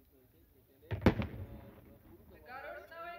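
A loud explosion booms at a distance and rumbles away.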